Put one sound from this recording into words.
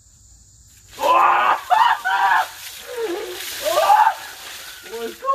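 Water splashes from a bucket onto a man.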